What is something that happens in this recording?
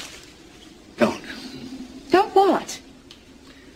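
A middle-aged man answers calmly in a low voice, close by.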